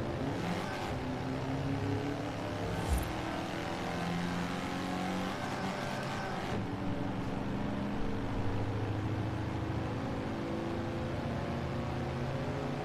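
A small car engine buzzes steadily and climbs in pitch as the car speeds up.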